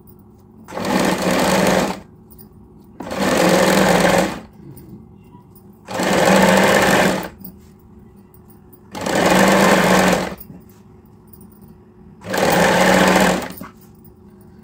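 A sewing machine whirs in short bursts, stopping and starting again.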